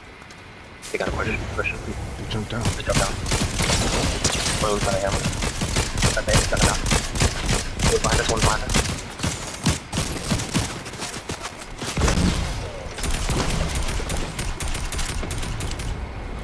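Rapid gunfire cracks in quick bursts.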